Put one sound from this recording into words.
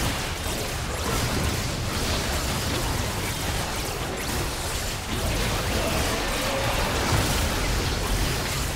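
Game spells and attacks crackle and boom in a fight against a large monster.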